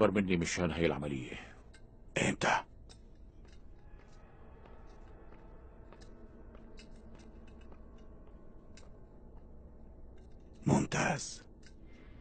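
A man speaks calmly on a phone, close by.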